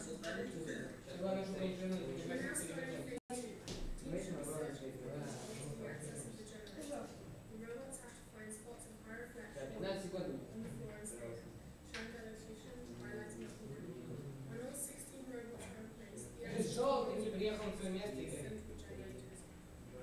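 Several teenage boys talk and chatter nearby in a room.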